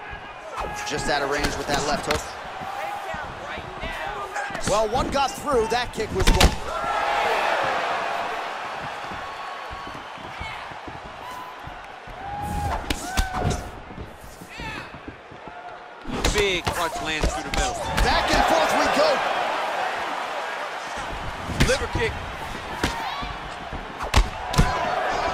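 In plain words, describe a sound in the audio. Punches thud against bodies in quick bursts.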